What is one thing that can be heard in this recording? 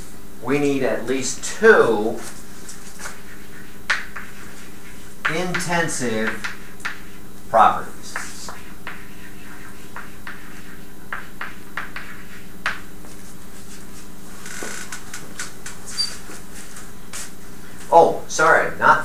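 An elderly man speaks calmly, as if lecturing, in a room with some echo.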